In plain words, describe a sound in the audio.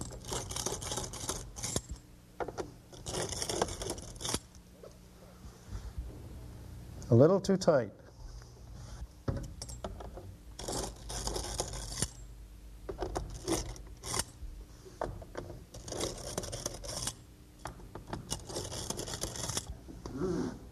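A screwdriver turns screws into metal with quick rasping strokes.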